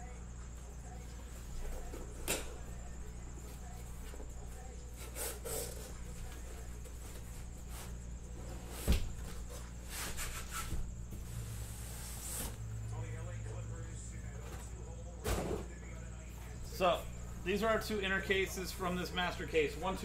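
Cardboard boxes slide and thump against each other.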